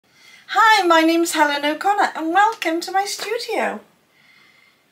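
A middle-aged woman speaks close to a microphone with animation, her voice rising and falling in a sing-song way.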